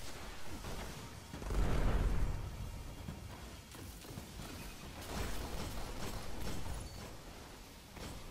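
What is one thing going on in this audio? Gunshots fire in quick bursts with loud booms.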